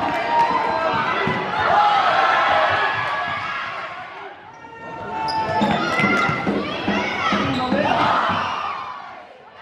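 Shoes squeak sharply on a hard indoor court.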